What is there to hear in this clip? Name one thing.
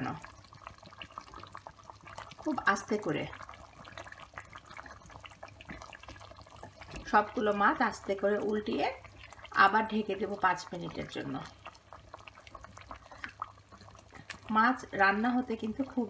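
A wooden spoon stirs and scrapes through a thick stew in a pot.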